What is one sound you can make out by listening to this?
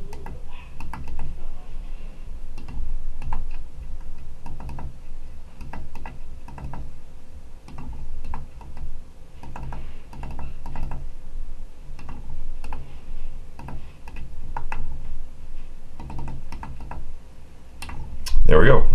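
Small buttons click as a finger presses them one after another.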